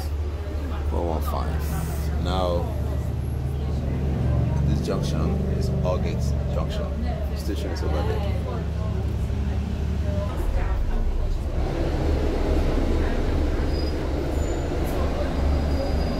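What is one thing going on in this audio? City traffic passes by on a busy street.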